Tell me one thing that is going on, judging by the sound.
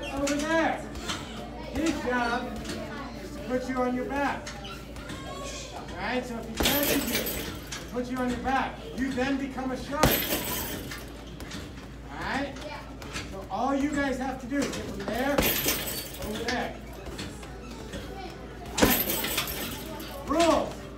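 A heavy punching bag thuds under hard kicks.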